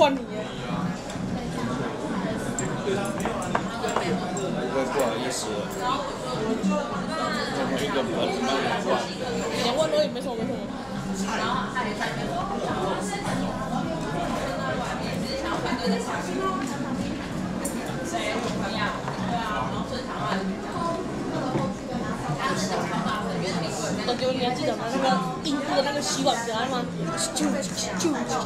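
A spoon clinks and scrapes against a small bowl.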